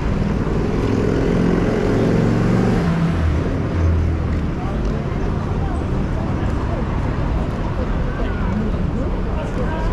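Many footsteps shuffle on pavement.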